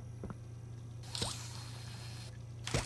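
A mechanical arm shoots out on a stretching cable with a whooshing hiss.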